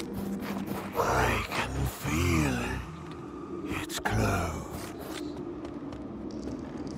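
A magical energy beam whooshes and hums.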